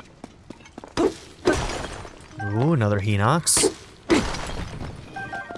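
Loud crashing blows strike during a fight.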